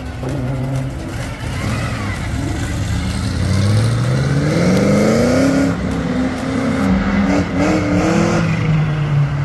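A powerful car engine rumbles and roars as it accelerates away, rising in pitch through the gears.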